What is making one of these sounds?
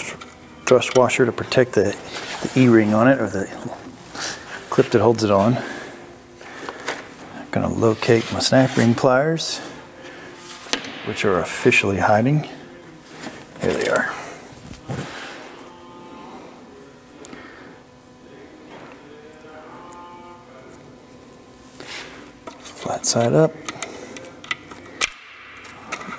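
Metal parts clink and knock as a man handles a gearbox.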